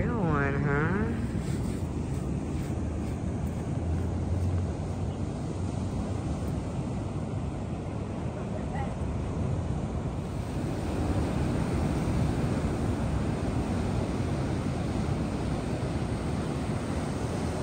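Ocean surf breaks and washes over rocks.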